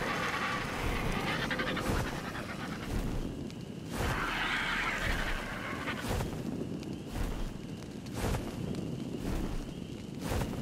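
Large wings flap in heavy, regular beats.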